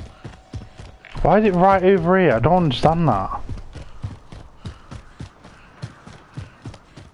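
Footsteps tread quickly over hard ground and grass.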